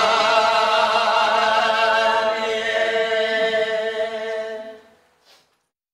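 Karaoke backing music plays through a loudspeaker.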